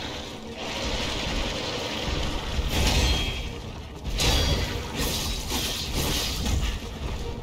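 A huge creature stomps and crashes to the ground with deep thuds.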